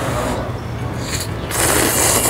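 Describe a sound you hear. A young woman slurps noodles loudly.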